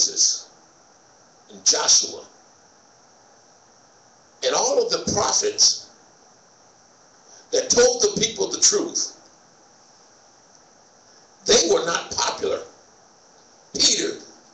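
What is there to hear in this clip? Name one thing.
A middle-aged man speaks calmly into a microphone in bursts, with pauses between phrases.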